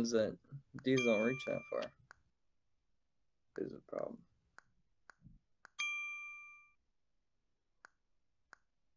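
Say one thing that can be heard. Soft electronic clicks sound now and then.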